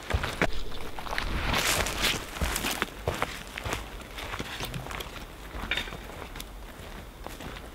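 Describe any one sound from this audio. Footsteps crunch on dry leaves and twigs outdoors.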